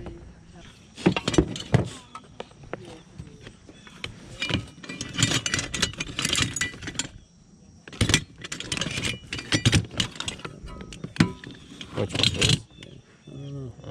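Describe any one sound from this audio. Metal tools clink and rattle in a plastic basket as a hand rummages through them.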